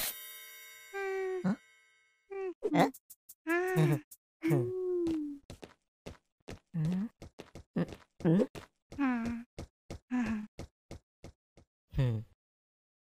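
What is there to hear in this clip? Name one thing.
A cartoon character talks in a high, squeaky voice with animation.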